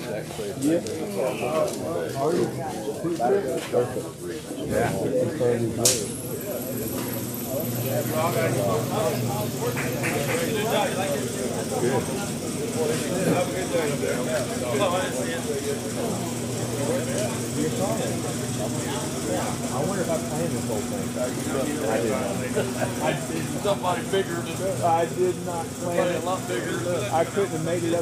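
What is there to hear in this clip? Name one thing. Men talk calmly nearby in a large echoing room.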